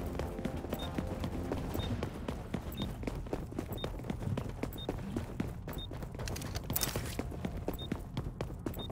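A short electronic beep sounds once every second, counting down.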